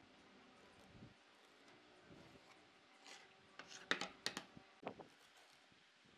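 A pencil scratches across a wooden board.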